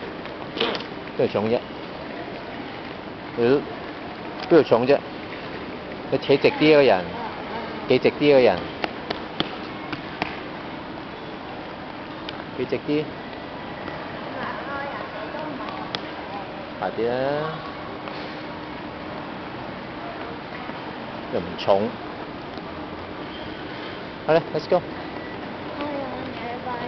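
A small suitcase rolls along a hard floor on its wheels.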